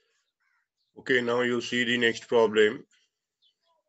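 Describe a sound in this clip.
A man speaks through a microphone.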